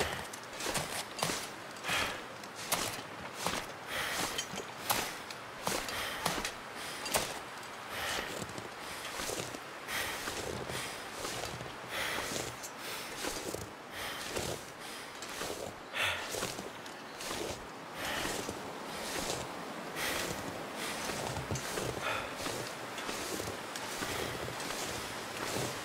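Footsteps crunch slowly through deep snow.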